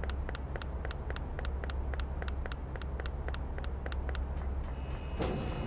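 Quick footsteps tap steadily as someone runs.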